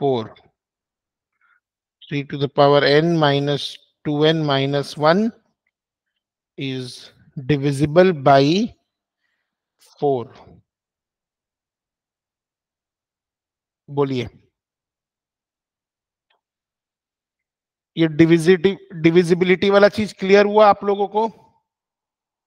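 A man speaks calmly through a microphone in short phrases, with pauses.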